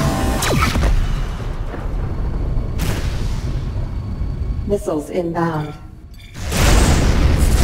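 Laser cannons fire in sharp, rapid bursts.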